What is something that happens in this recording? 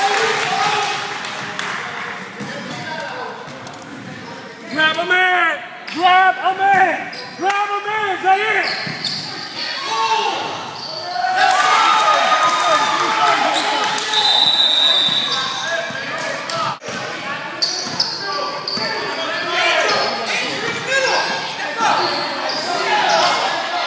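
Sneakers squeak on a hard court floor in a large echoing gym.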